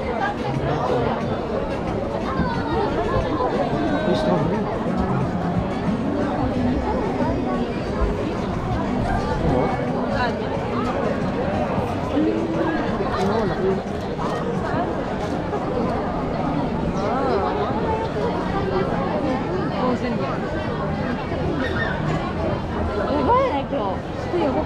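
Many footsteps shuffle on pavement.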